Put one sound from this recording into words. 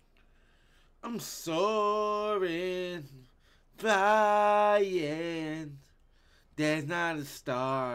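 A young man sings loudly and playfully into a close microphone, holding long notes.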